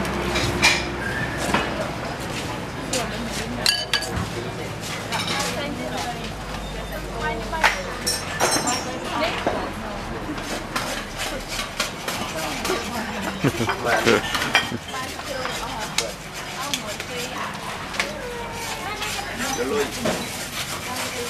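Young women talk nearby.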